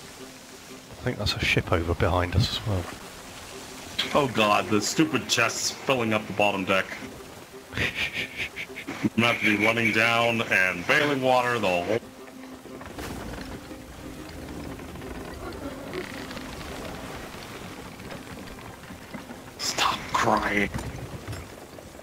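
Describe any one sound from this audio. Wind blows steadily through billowing sails.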